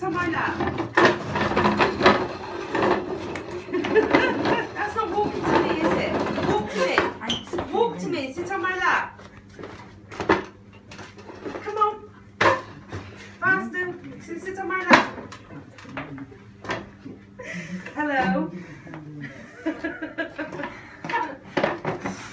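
A wooden folding chair clacks and knocks as it is handled.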